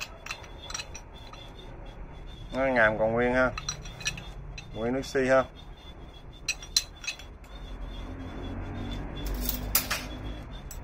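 A metal adjustable wrench clicks and clanks as it is handled.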